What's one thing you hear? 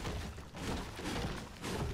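A pickaxe thuds against a tree trunk.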